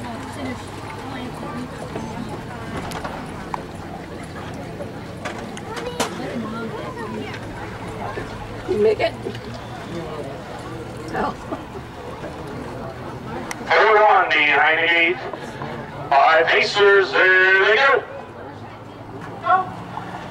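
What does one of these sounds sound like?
Horses' hooves thud on a dirt track.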